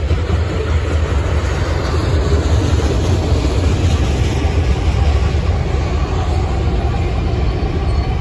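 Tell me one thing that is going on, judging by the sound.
Diesel locomotives drone as they pass.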